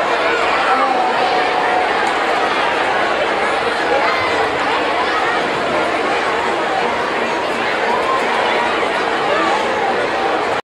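A large crowd chatters and calls out loudly outdoors.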